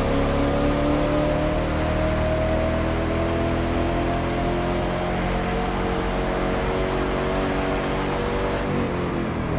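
A car engine roars at high speed, its pitch slowly rising.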